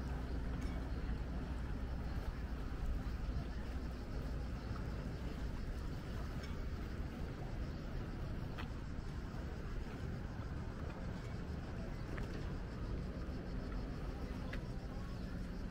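Lake water laps gently against a stone wall.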